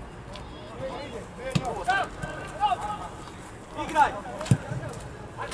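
Young men shout to each other across an open outdoor field.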